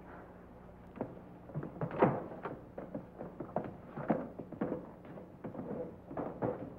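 Footsteps thud across a wooden floor.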